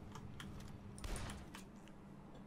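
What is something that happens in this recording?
A gunshot bangs loudly.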